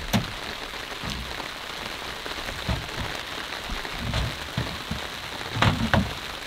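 Items clunk and knock softly at the back of a pickup truck outdoors.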